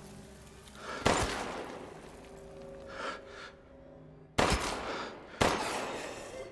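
A shotgun fires loud blasts that echo through a large hall.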